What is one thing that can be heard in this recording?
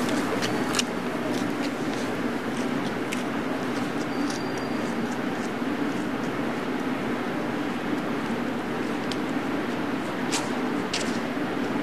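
Footsteps walk away on pavement and fade.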